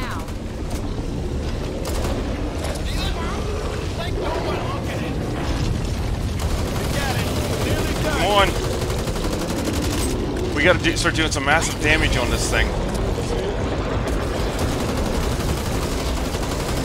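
A low, steady rumble fills the background.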